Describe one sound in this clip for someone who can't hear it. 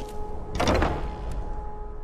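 A heavy wooden door creaks and thuds open.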